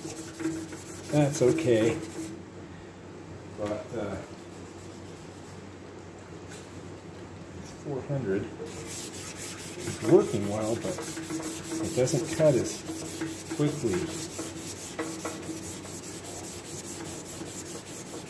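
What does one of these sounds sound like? A sanding pad scrubs back and forth over a metal surface.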